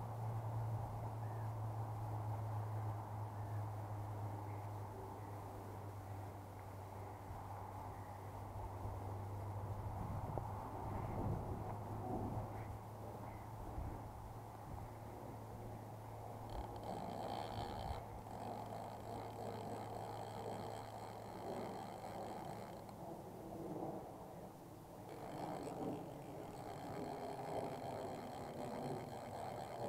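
Wind blows outdoors and buffets close by.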